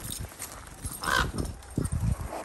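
A crow caws overhead.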